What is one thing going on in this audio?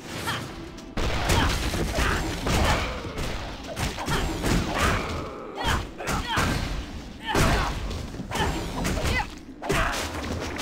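Game combat sounds of spells and blows clash rapidly.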